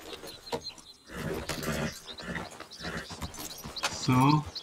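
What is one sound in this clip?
A horse's hooves clop on a dirt trail.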